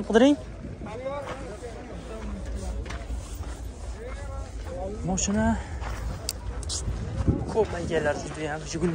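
Men talk close by with animation, outdoors.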